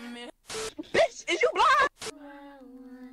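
Young women laugh and shriek loudly.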